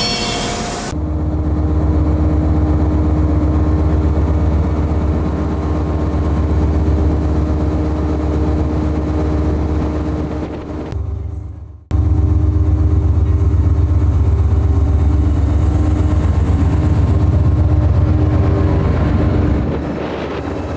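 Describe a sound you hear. A diesel locomotive engine rumbles loudly as it passes close by.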